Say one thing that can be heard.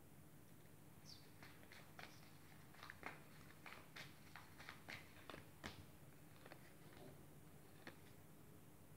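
Playing cards are shuffled by hand with soft riffling and tapping.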